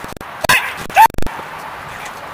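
A dog barks sharply.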